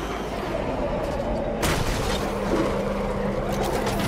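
Heavy punches land with loud thuds.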